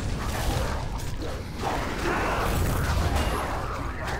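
Magic spell effects whoosh and crackle.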